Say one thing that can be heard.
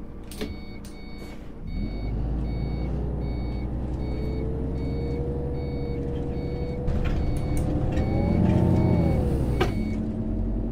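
A door warning beeps repeatedly.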